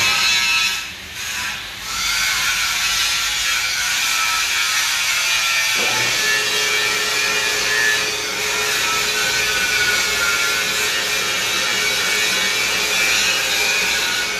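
Metal shavings scrape and hiss as a lathe cuts.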